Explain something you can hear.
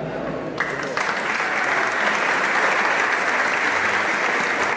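Men murmur and chat in a crowd.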